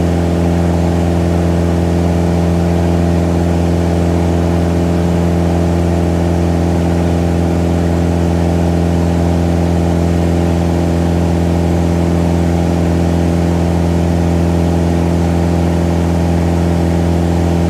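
A small propeller plane's engine drones loudly and steadily.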